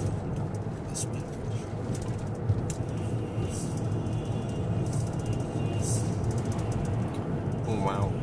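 Tyres rumble steadily over the road.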